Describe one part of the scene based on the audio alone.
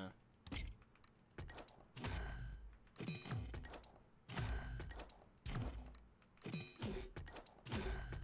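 Game menu sounds whoosh and chime as options change.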